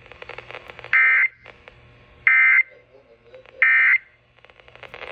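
A radio sounds three short, loud beeps.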